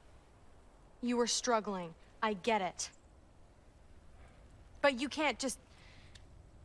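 A young woman speaks calmly and cheerfully, close by.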